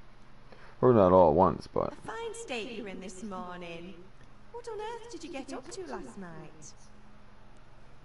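A woman speaks with surprise, close by.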